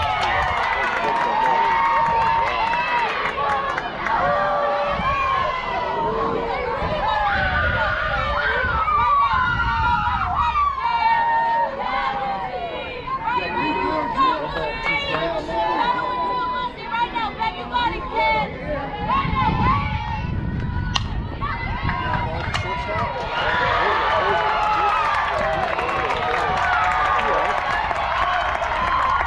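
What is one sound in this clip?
Young girls chant and cheer loudly nearby, outdoors.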